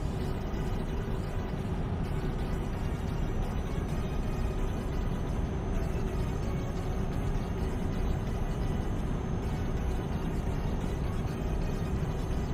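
A truck engine drones steadily at cruising speed.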